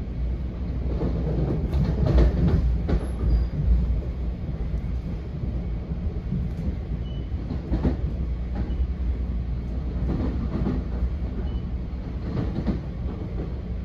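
Train wheels clatter and knock over rail joints.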